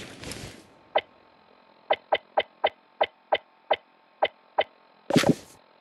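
A handheld device clicks in rapid, even ticks.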